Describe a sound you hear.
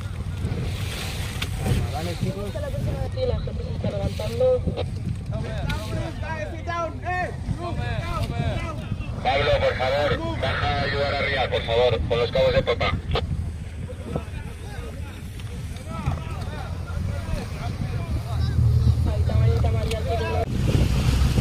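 Men call out loudly across the water outdoors.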